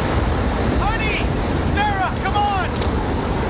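A man yells out loudly.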